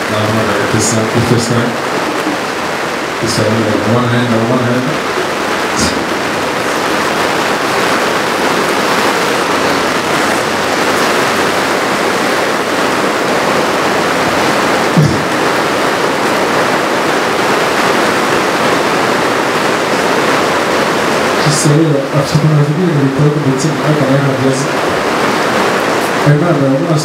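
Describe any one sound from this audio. A man speaks slowly into a microphone over loudspeakers, with pauses.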